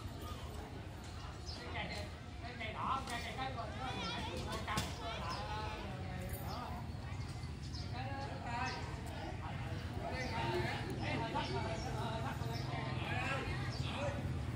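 People talk nearby outdoors at a distance, in casual voices.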